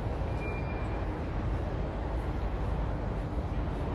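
Traffic hums steadily along a nearby city street.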